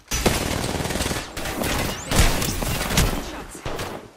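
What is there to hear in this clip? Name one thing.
Gunfire rattles rapidly from a game.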